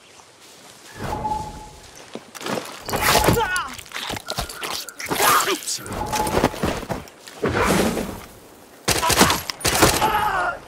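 A pistol fires loudly several times.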